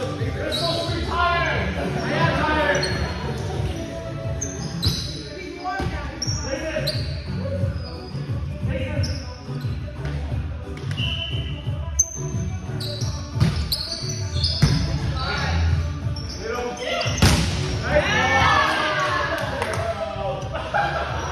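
Young men and women chatter and call out in a large echoing hall.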